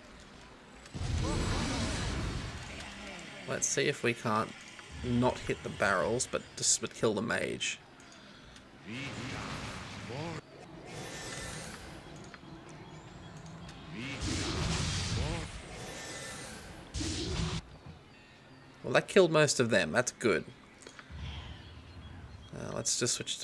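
Magic spells burst and crackle in short surges.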